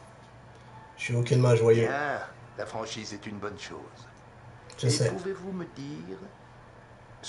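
A middle-aged man speaks calmly and quietly, close by.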